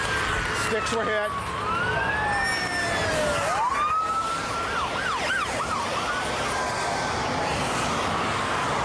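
Car tyres roar steadily on the road.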